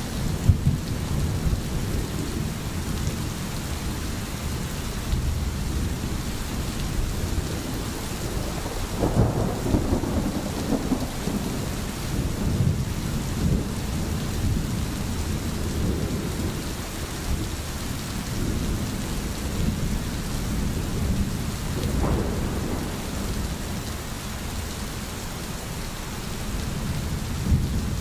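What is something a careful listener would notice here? A stream burbles and rushes steadily over stones.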